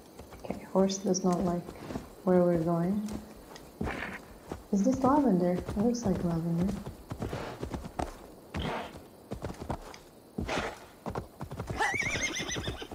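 A horse trots with hooves thudding on soft ground.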